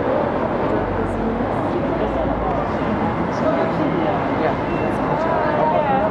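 A crowd of men and women chatter nearby in a busy street.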